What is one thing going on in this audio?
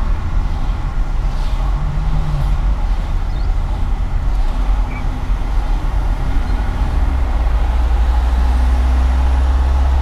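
A car's engine hums steadily as it drives along a highway.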